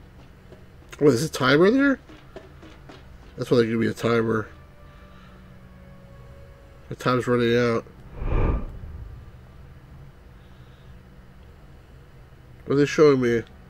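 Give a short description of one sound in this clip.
A middle-aged man talks with animation into a close microphone, in short bursts.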